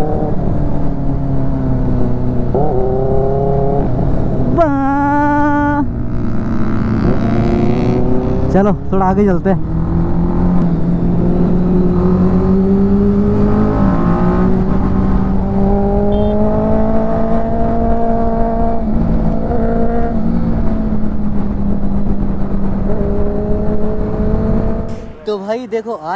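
A motorcycle engine hums loudly and revs up and down.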